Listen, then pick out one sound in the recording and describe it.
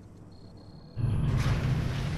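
A loud rumbling blast roars.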